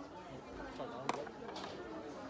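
A plate clinks on a table.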